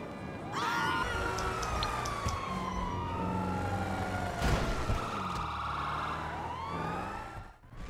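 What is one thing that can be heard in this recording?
A car engine revs as the car speeds along.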